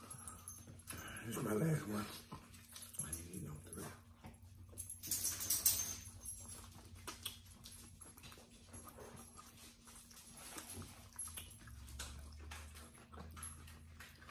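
Two people chew food noisily up close.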